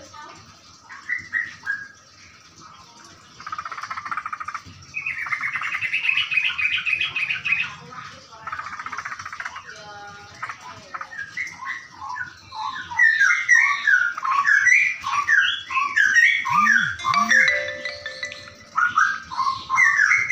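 Birds chirp and trill rapidly nearby.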